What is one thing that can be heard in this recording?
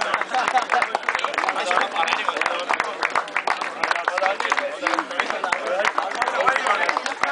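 Young men chatter and call out in a crowd.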